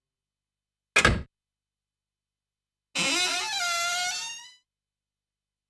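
A heavy metal door creaks open.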